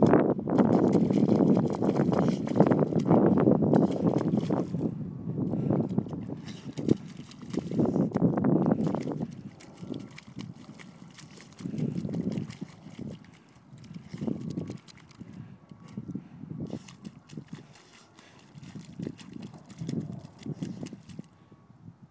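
A dog splashes and digs in a muddy puddle.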